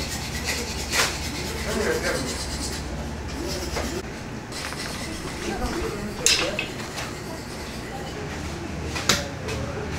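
Heavy meat slaps and thuds as it is handled on a table.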